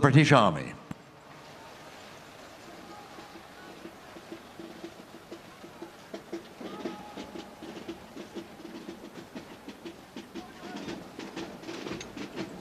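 A military band plays faintly in the distance.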